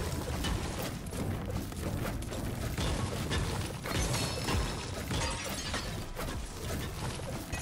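A pickaxe strikes hard objects with repeated sharp knocks.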